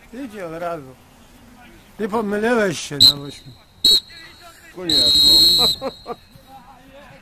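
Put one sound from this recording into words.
Men shout and cheer across an outdoor pitch.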